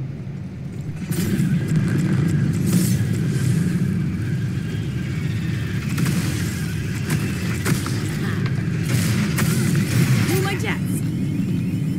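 A weapon fires a roaring stream of flame.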